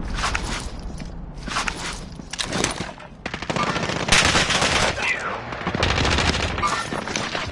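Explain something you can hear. A man talks with animation into a microphone.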